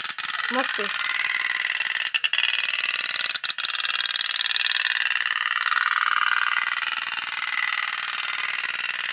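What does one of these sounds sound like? A small toy steam boat putters with a fast, steady rattling buzz as it circles in water.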